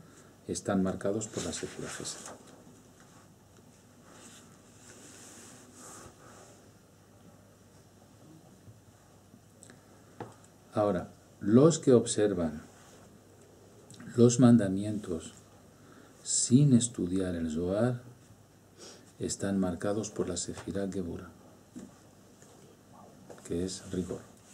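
A middle-aged man speaks calmly and close up, with pauses.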